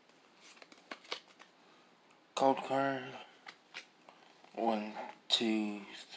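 Trading cards rustle and flick in a hand.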